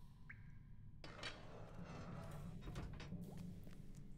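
A heavy stone door grinds open.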